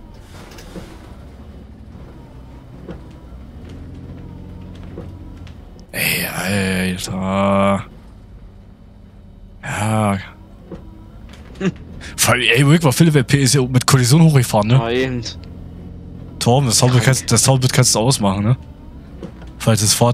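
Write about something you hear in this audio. An articulated city bus with a natural-gas engine drives along.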